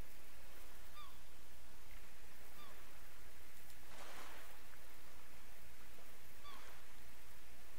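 Seagulls cry in the distance.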